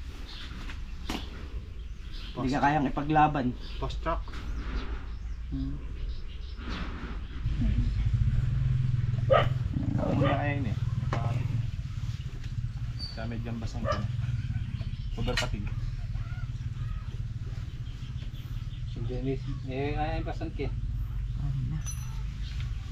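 Young men talk casually nearby.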